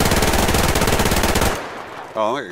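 A rifle fires a loud burst of shots.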